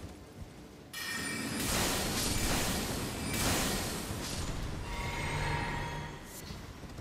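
A magic spell whooshes and crackles loudly.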